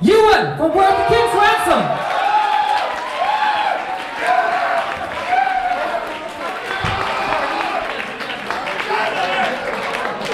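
A man speaks with animation through a microphone and loudspeakers in an echoing hall.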